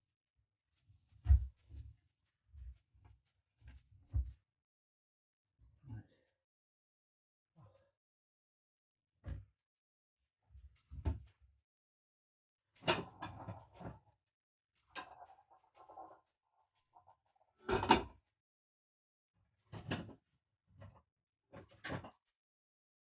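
Dough slaps and thumps on a hard counter.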